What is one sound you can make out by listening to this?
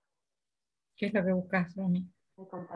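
An elderly woman speaks over an online call.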